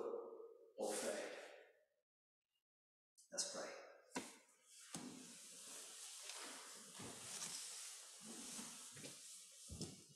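A middle-aged man speaks calmly, heard in a large echoing hall.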